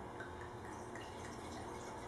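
A man pours wine into a glass.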